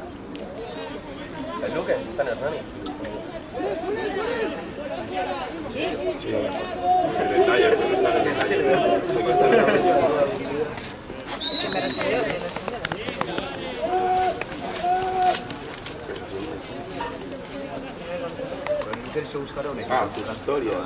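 Men shout and call to each other outdoors across an open field.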